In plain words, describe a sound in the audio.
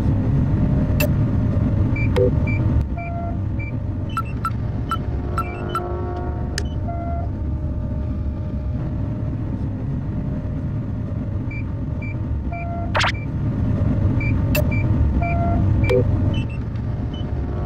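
Short electronic blips sound as a game menu is browsed.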